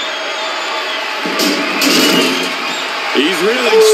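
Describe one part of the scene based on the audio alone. A heavy metal object clatters onto the floor.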